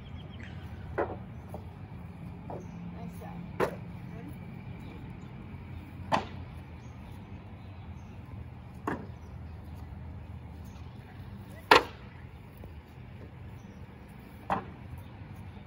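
A light disc slaps into hands as it is caught.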